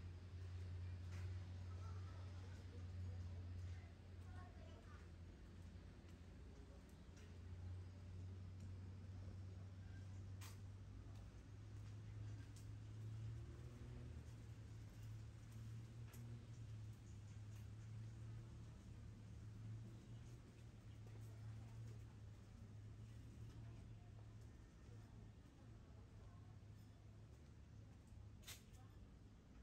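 Footsteps tap softly on a paved alley.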